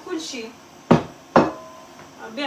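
Metal pots clank together.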